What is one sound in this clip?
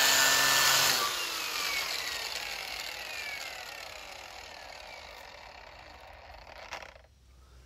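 An electric sander winds down and falls quiet.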